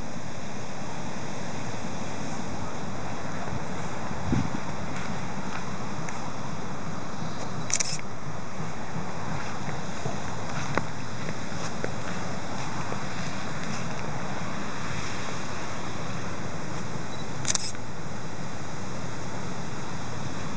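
Wind blows steadily outdoors, rustling tree leaves.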